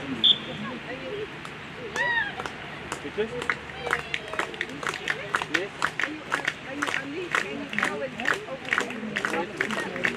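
A crowd of people chatters outdoors at a distance.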